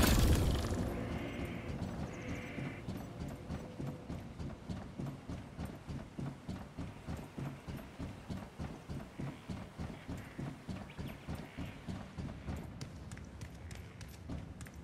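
A character's footsteps thud quickly and steadily on a hard floor.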